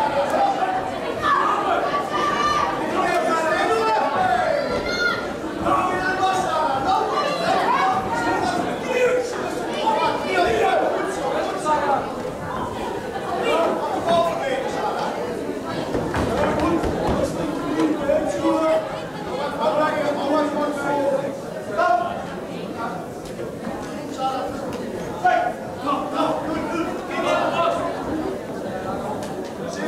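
A crowd of spectators shouts and cheers in an indoor hall.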